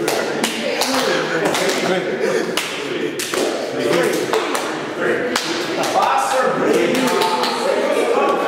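Another man answers and laughs close by.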